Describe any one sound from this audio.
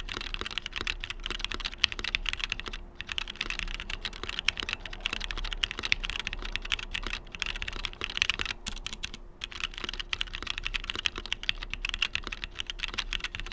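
Keys on a mechanical keyboard clack rapidly as someone types fast.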